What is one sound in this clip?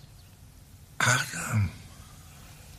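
A man speaks tensely and quietly close by.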